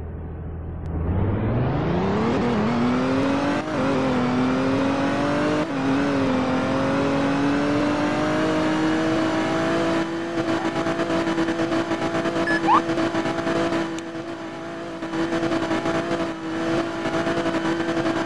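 A car engine revs up and roars steadily as the car speeds along.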